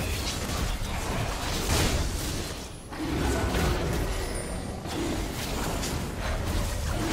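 Fantasy spell effects whoosh and crackle in quick bursts.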